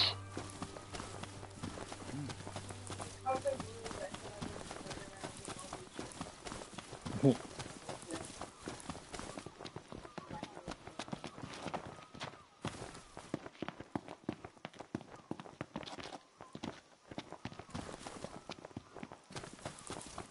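Footsteps patter quickly over grass and ground.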